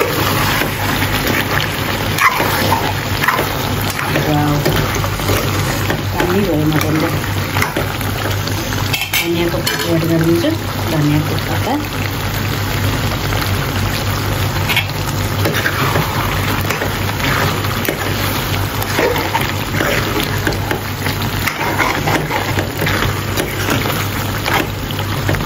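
Food sizzles and bubbles in a hot pan.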